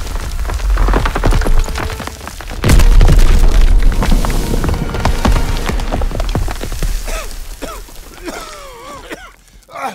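A building collapses with a deep rumble.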